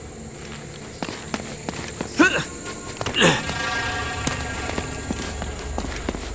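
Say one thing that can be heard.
Footsteps scuff on stone as a man runs.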